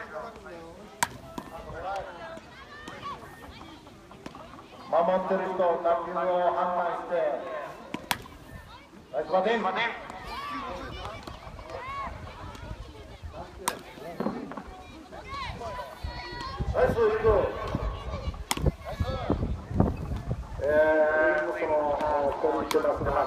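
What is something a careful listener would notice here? A bat cracks sharply against a ball, again and again.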